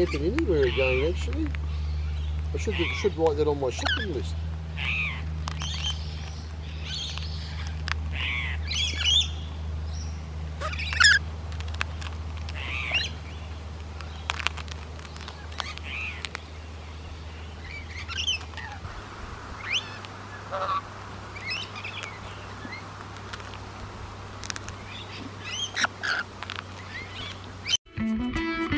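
Parrots chirp and squawk close by.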